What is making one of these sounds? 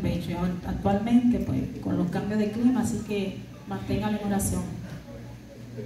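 A woman sings into a microphone over loudspeakers in an echoing hall.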